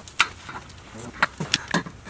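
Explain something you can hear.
A ratchet wrench clicks as it turns.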